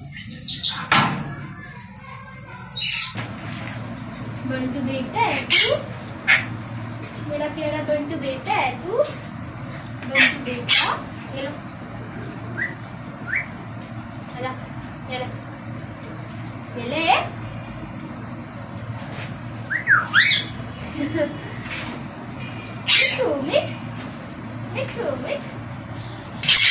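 Parrots squawk and whistle close by.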